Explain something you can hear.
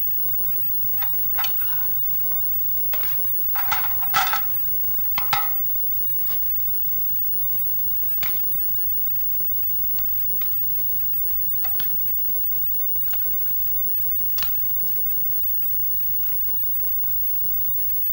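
Dishes and spoons clink softly close by.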